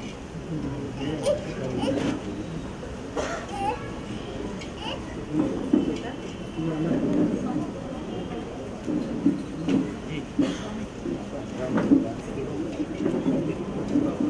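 A crowd of men and women talk and murmur close by.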